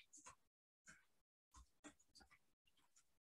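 Keys click softly as someone types on a keyboard.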